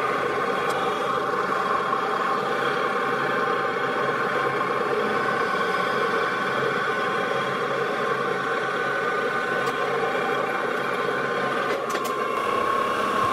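A cutting tool scrapes against spinning metal.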